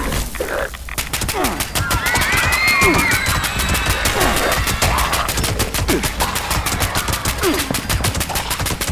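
An automatic gun fires in rapid bursts.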